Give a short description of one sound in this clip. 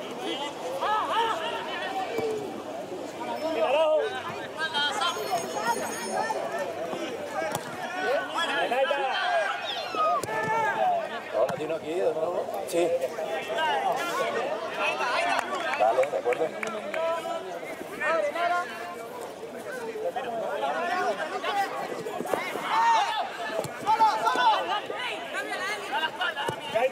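Several men talk and call out loudly close by, outdoors.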